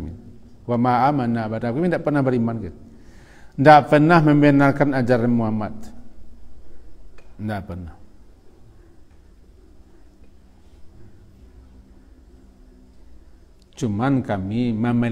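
A middle-aged man speaks calmly into a close microphone, with long pauses.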